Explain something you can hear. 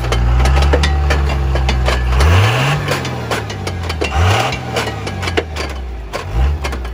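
Brush and dry grass scrape and crackle against a truck's side.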